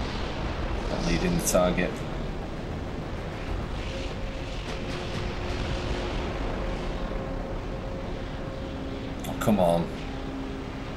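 Heavy explosions boom.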